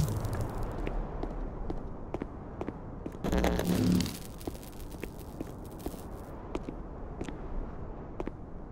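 Hands slap and grip against rock in a steady climbing rhythm.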